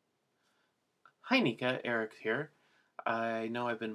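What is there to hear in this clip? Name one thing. A young man speaks calmly and close up.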